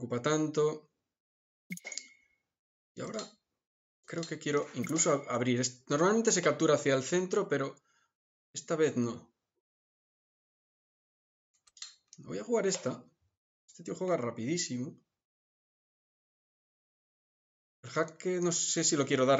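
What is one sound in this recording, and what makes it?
A man talks calmly and thoughtfully into a close microphone, with pauses.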